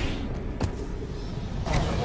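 A fist strikes a body with a heavy thud.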